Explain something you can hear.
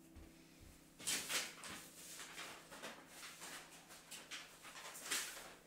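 Sheets of paper rustle and slide across a hard floor.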